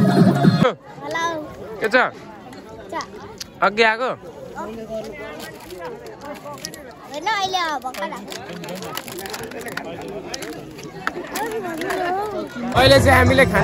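Young children chatter and laugh nearby.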